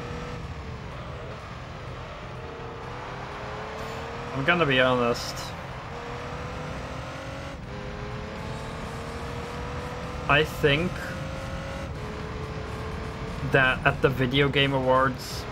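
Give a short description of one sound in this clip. A racing car engine drones steadily, rising and falling in pitch as it shifts gears.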